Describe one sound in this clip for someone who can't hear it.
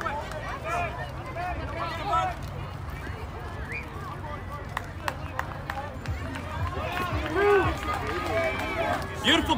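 Young girls cheer and shout close by, outdoors.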